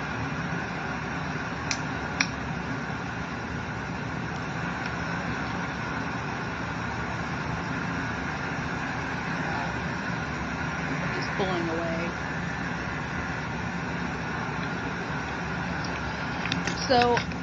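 Electric clippers buzz steadily close by.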